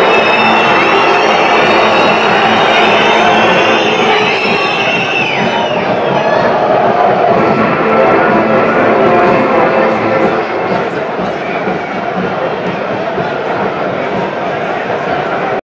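A large stadium crowd roars and chants outdoors.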